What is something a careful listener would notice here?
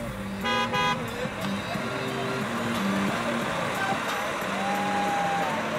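A fire truck engine rumbles as it drives slowly past.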